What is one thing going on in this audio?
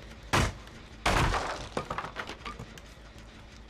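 Wooden boards crash and splinter apart.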